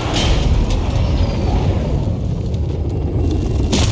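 A tank rumbles along.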